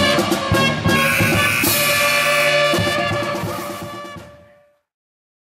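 A pep band plays brass, woodwinds and drums loudly in an echoing hall.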